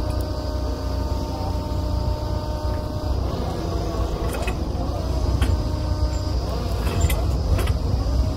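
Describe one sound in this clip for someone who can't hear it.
A drilling rig's diesel engine runs with a steady low rumble.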